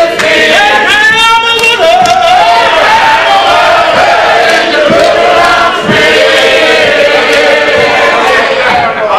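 A man sings out loudly and with passion in an echoing room.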